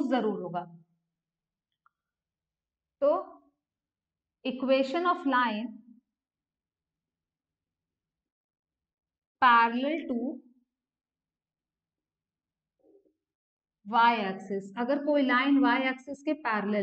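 A young woman speaks calmly through a microphone, in short phrases with pauses.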